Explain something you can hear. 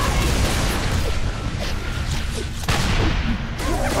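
A heavy melee blow thuds.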